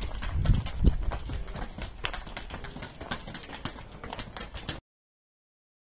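Footsteps and hooves tap on a hard path.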